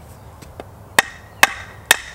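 A post driver bangs down on a wooden stake in loud, ringing blows.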